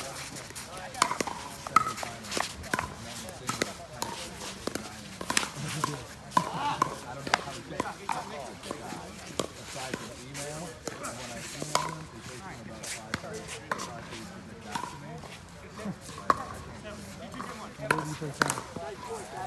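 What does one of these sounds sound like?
Paddles hit a plastic ball with sharp hollow pops.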